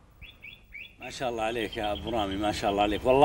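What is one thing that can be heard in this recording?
A man talks calmly at a distance.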